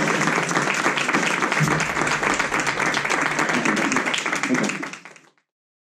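A pianist plays chords on an electric piano.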